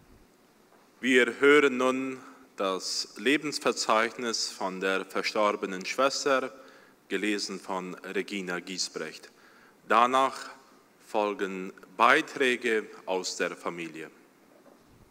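A young man speaks calmly through a microphone and loudspeakers in an echoing hall.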